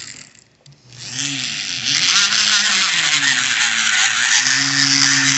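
A valve grinds harshly against its seat as a tool spins it back and forth.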